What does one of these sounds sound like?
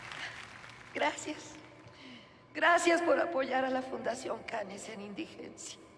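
A woman speaks into a microphone, amplified through loudspeakers.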